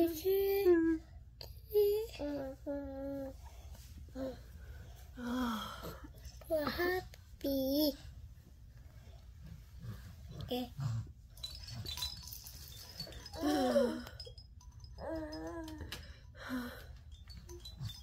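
A young woman sobs and wails close by.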